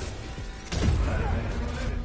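A heavy punch lands with a loud thud.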